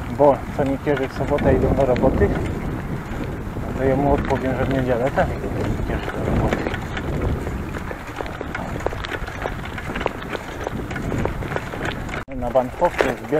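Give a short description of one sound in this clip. Bicycle tyres rumble and rattle over a bumpy, broken road.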